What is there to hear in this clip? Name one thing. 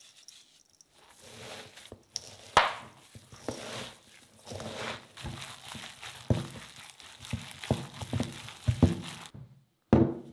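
Gloved hands squish and knead minced meat.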